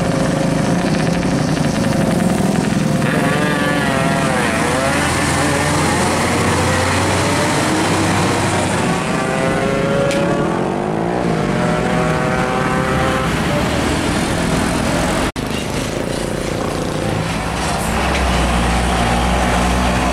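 Heavy truck engines rumble loudly as the trucks drive past close by.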